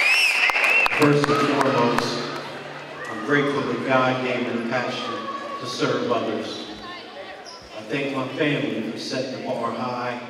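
An elderly man speaks steadily into a microphone, heard through loudspeakers in a large echoing hall.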